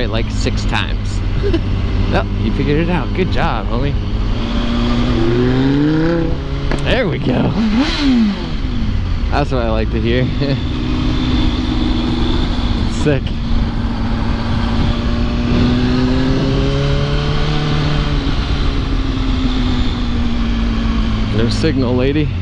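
A motorcycle engine hums and revs up and down while riding.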